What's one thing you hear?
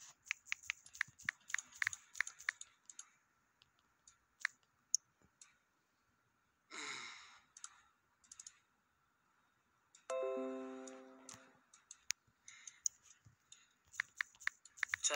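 Phone keyboard keys tick rapidly.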